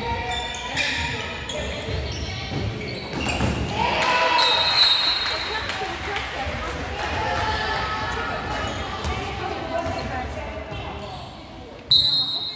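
Young girls shout and call out in a large echoing hall.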